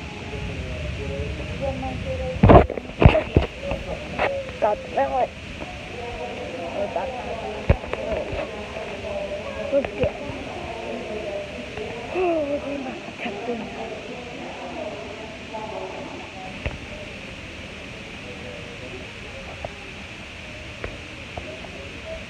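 People talk in a murmur nearby.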